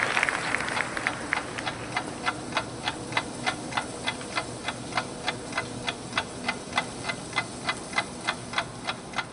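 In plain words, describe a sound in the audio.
A drum taps a steady beat.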